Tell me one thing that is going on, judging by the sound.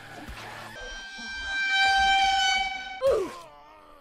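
A bird-like creature lets out a long, high screech.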